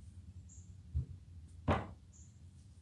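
A gun is set down with a knock on a padded surface.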